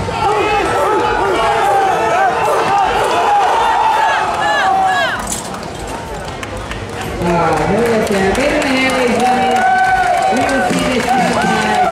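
A crowd of men shouts and cheers loudly in a large echoing hall.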